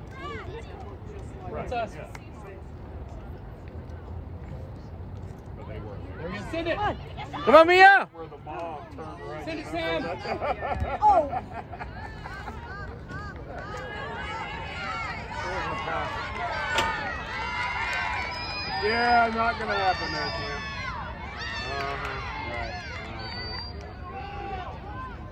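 Young women players call out to each other across an open field.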